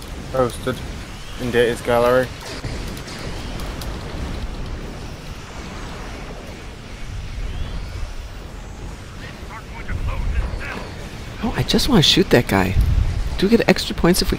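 Explosions boom and rumble in a game.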